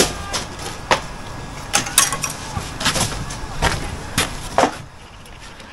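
A trowel scrapes and taps on bricks and mortar.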